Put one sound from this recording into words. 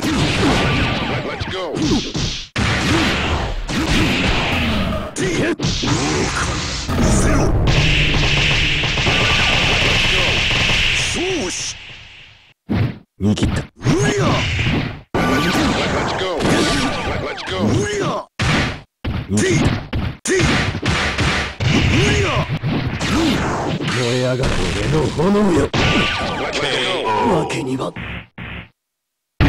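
Punches and kicks smack hard in quick bursts.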